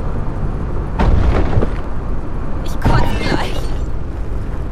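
A vehicle crashes with loud crunching bangs.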